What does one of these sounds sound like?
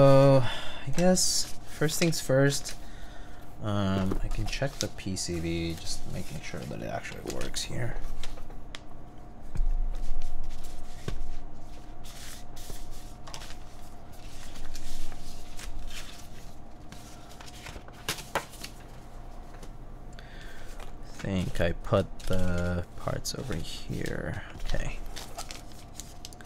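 Plastic sheets rustle and clatter as hands handle them.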